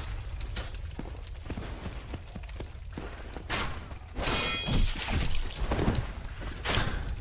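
Heavy armored footsteps clank on stone.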